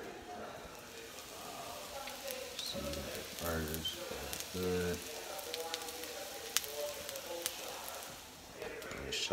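Meat patties sizzle on a hot griddle.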